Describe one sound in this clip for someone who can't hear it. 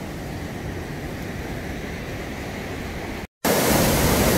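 A river rushes over rapids.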